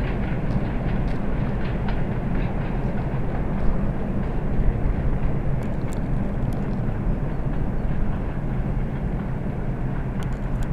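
An electric train approaches with a low steady rumble.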